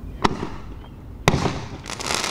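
Firecrackers go off with sharp bangs.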